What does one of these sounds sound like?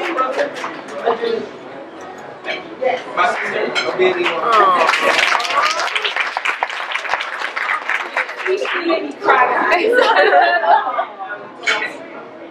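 A crowd chatters and cheers.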